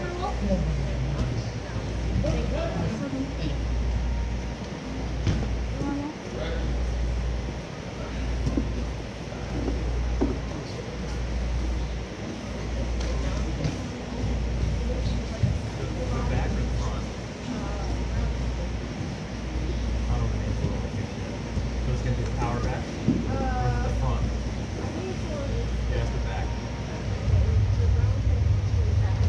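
Bodies thump and shuffle on a padded floor.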